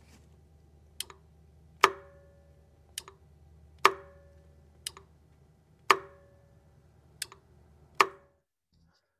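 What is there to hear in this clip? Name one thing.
An electrical tester beeps sharply at a steady pace.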